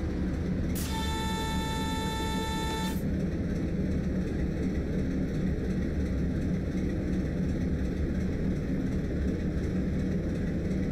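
A diesel locomotive engine rumbles steadily.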